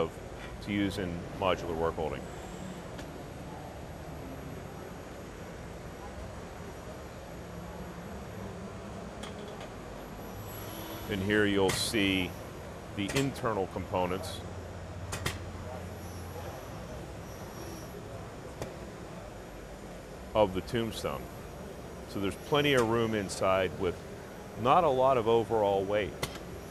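A man speaks nearby in a calm, explanatory way.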